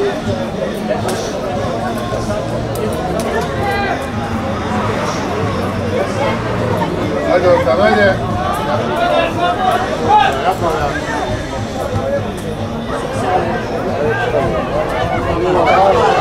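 Players shout to each other across an open outdoor field.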